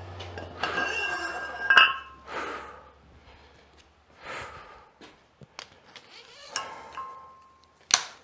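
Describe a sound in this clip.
Metal weight plates clank against a barbell.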